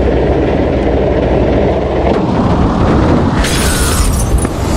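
A truck crashes with a loud crunch.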